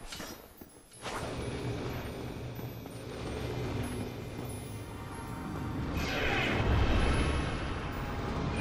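Huge wings beat with a low, steady whooshing rumble.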